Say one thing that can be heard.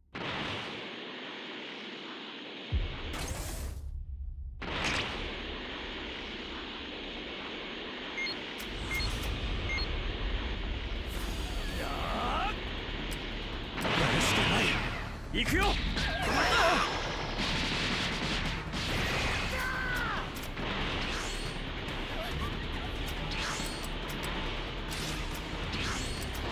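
Energy whooshes in bursts as a game character dashes.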